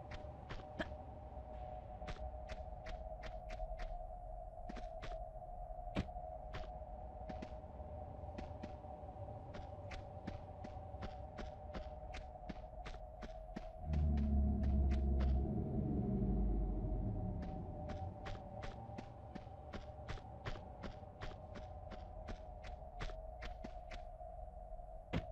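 Quick footsteps patter steadily on a hard stone floor.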